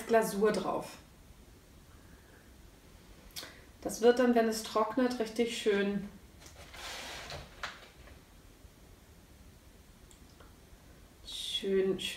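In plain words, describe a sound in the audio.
A woman talks calmly and close by, in short bursts.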